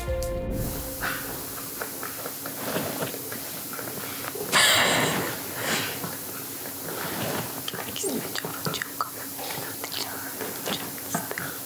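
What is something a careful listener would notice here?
A young woman talks quietly, a little way off.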